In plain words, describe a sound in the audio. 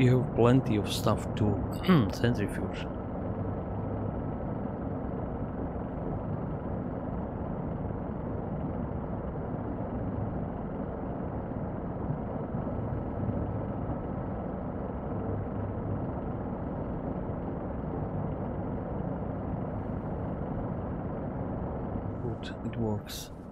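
A machine hums steadily and low.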